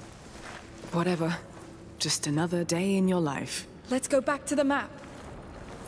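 A young woman speaks calmly and casually, close by.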